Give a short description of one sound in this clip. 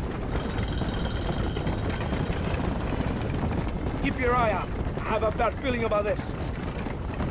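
A wooden wagon rumbles and creaks over a dirt track.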